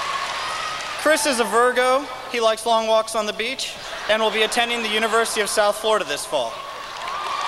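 A young man speaks into a microphone over loudspeakers in a large echoing hall.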